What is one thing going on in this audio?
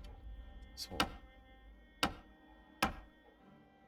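Short menu clicks sound as options are selected.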